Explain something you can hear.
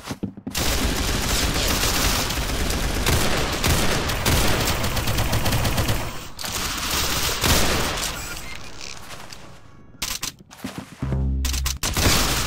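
A rifle fires single shots.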